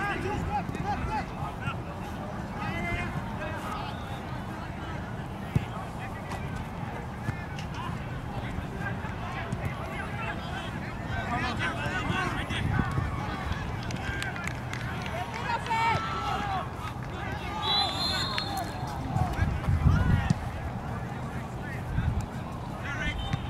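Young players shout to each other from a distance, outdoors.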